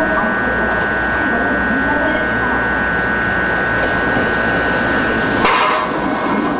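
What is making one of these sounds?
A train approaches with a rising rumble.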